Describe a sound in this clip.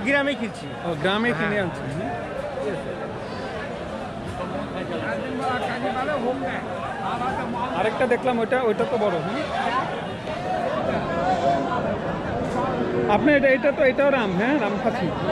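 Several men talk at once close by, outdoors in a busy crowd.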